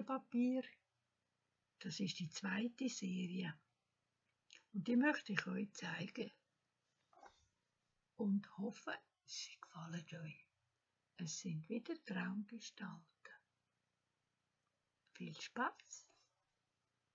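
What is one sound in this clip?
An elderly woman speaks calmly and close up, with pauses.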